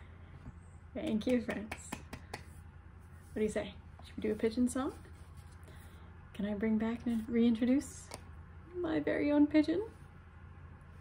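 A young woman talks to the listener with animation, close to a microphone.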